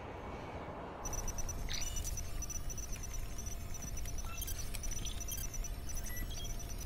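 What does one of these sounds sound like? Electronic displays beep and chirp.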